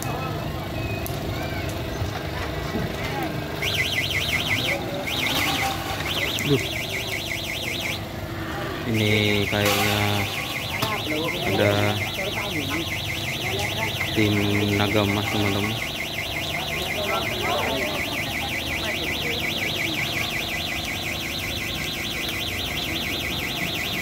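Several men talk and call out to each other nearby, outdoors.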